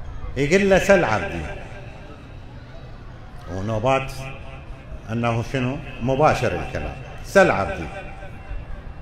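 An elderly man speaks slowly and with feeling through a microphone in an echoing hall.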